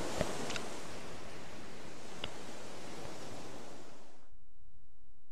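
Waves wash onto a sandy shore.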